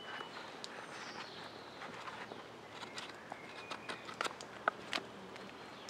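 A knife shaves and scrapes a linden wood spoon blank.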